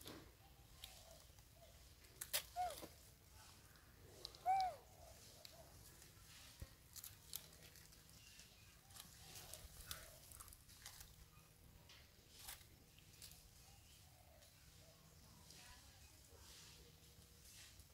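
Leaves and twigs rustle as monkeys move about.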